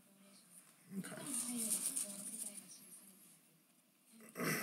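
Stiff cards rustle and shuffle as a hand picks them up.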